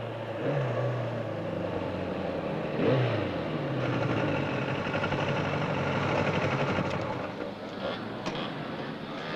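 A motorcycle engine revs and roars past.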